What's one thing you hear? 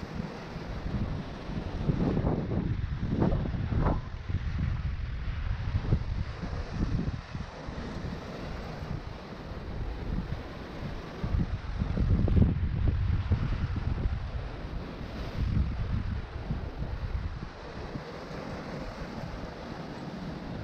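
Hands scrape and grip on rough rock.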